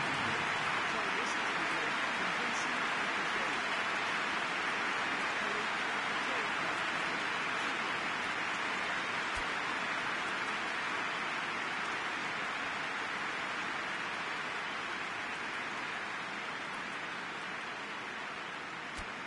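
A large stadium crowd murmurs and roars steadily, slowly fading.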